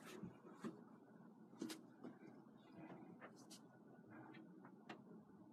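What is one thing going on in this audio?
A paintbrush dabs and taps softly against a canvas.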